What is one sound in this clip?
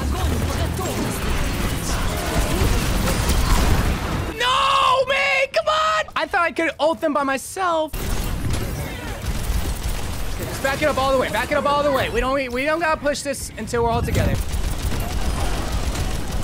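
Game weapons fire in rapid bursts.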